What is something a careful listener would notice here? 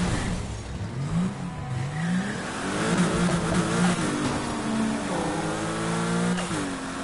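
Tyres screech as a car drifts around corners.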